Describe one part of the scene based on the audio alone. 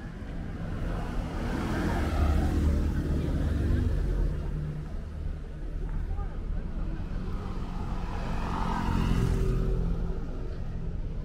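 Motor scooters buzz past close by on a street.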